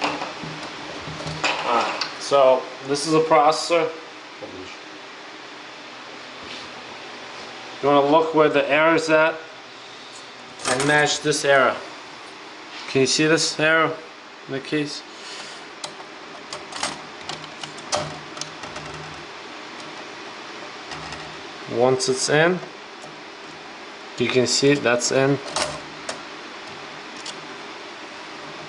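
Plastic and metal parts click and knock as a computer is put together.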